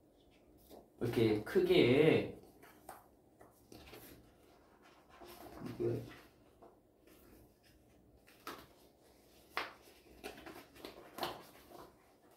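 A stiff cardboard folder rustles and taps as it is handled.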